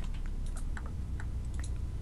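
A pickaxe chips at stone in quick knocks.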